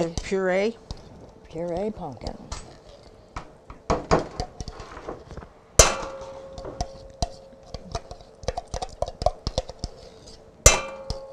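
A spoon scrapes and clinks against the inside of a metal can.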